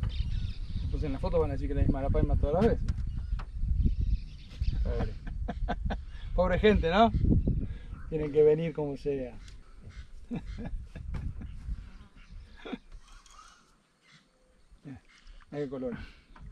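A man talks excitedly, close by.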